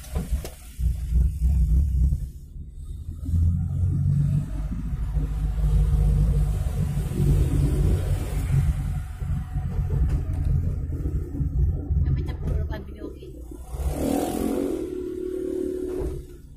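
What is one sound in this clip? A motorbike engine buzzes close by as it passes.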